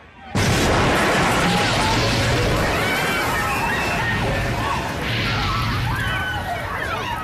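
A crowd of people screams and shouts in panic.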